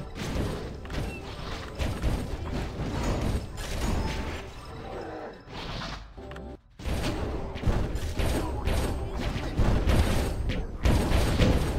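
Fiery spell blasts boom and crackle in a game battle.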